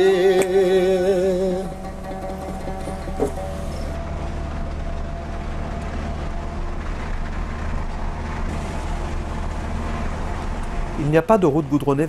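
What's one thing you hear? A vehicle engine hums steadily as it drives over sand.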